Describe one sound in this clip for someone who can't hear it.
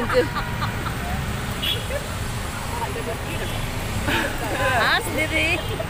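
Women talk and laugh cheerfully close by.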